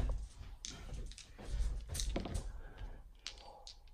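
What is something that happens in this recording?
Dice clatter and rattle in a soft tray.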